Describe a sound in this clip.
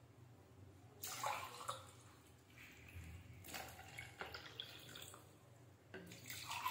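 Liquid pours from a bottle into a glass.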